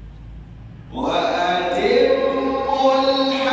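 A man recites in a melodic chanting voice through a microphone, with echo.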